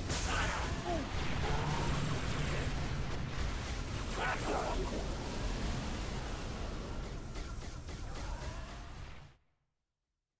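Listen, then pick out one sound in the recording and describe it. An energy weapon crackles and hums.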